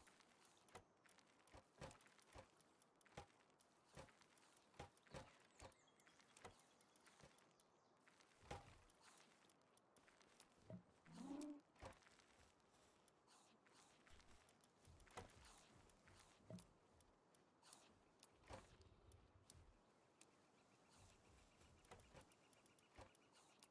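Short game menu clicks tick again and again.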